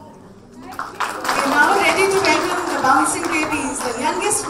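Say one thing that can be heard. A woman speaks calmly into a microphone, heard through loudspeakers.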